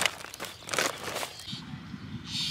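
A woven plastic sack rustles and crinkles as it is handled.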